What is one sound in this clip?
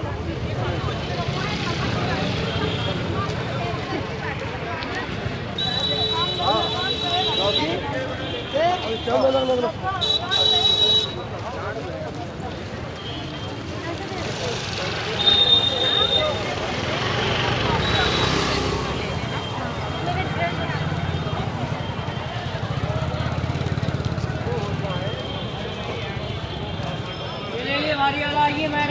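A busy crowd chatters all around outdoors.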